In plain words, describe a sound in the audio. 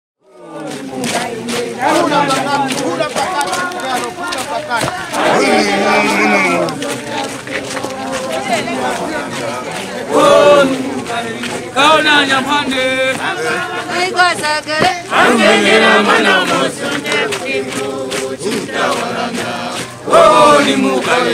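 A crowd of men and women sings together loudly outdoors.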